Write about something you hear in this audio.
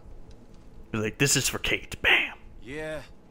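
A second man shouts out a greeting.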